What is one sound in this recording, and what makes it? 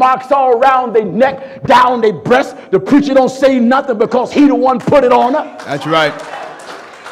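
A man preaches loudly and passionately through a microphone, with a singing lilt.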